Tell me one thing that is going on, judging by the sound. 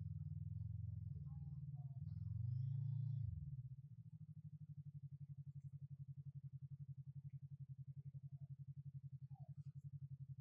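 A motorcycle engine revs, then settles into a steady, throbbing idle.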